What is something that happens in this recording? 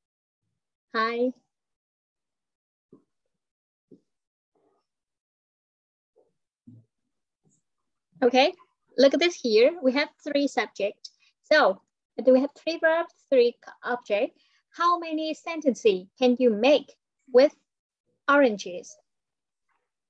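A young girl speaks clearly over an online call.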